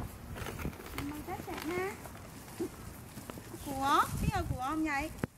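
A young woman speaks and exclaims excitedly nearby.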